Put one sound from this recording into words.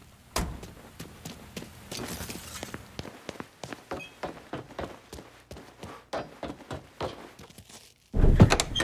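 Footsteps climb a stairway at a steady pace.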